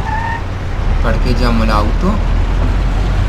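Car tyres screech while turning sharply.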